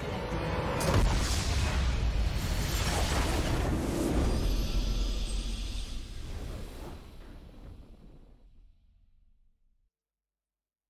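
A triumphant fanfare swells and then fades out.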